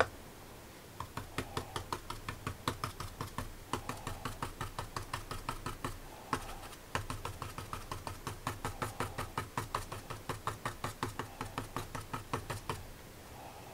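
A brush taps and dabs quickly against paper.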